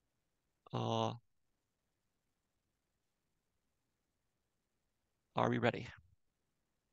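A man speaks briefly over an online call, in short phrases.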